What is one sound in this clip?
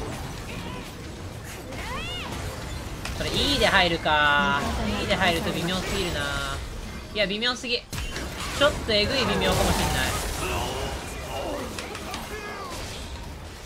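Game spell effects crackle and whoosh in quick bursts.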